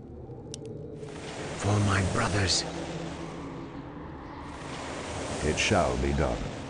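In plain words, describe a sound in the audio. A rushing burst of magic roars and swirls.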